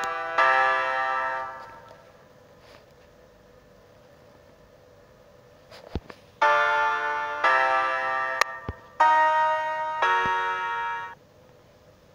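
An electronic game plays bright musical tones in short bursts.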